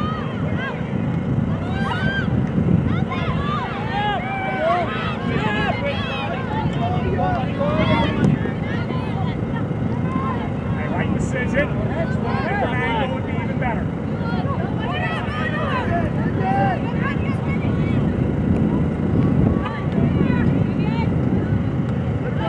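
Young women shout to each other from a distance across the field.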